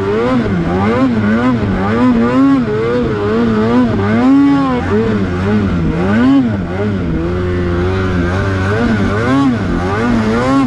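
A snowmobile engine revs up and down constantly as it climbs across a slope.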